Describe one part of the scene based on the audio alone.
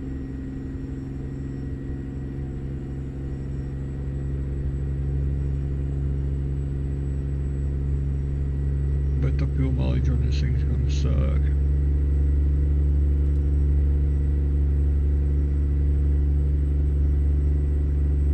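A truck engine drones steadily at a low pitch, growing slowly louder.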